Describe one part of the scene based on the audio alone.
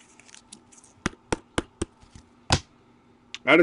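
Plastic card holders click and tap against each other.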